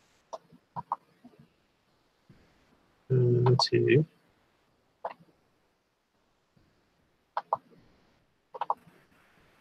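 A man speaks in short bursts over a headset microphone in an online call.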